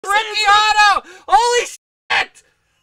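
A man exclaims loudly with excitement into a microphone.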